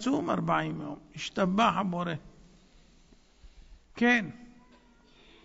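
A man speaks slowly through a microphone in a large hall.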